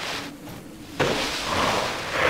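Rocks crack and crumble apart.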